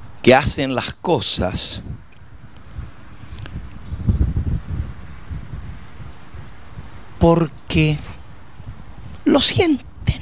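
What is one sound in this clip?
An elderly man preaches with animation through a microphone and loudspeakers, outdoors.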